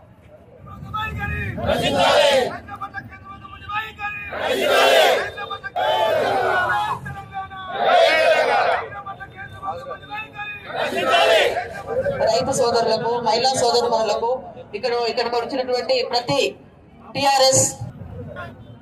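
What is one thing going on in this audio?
A crowd of men and women chants slogans loudly outdoors.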